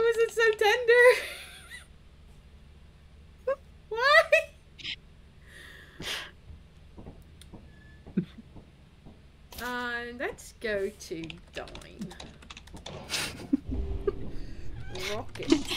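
A young woman talks with animation, in a high, lively voice, close to a microphone.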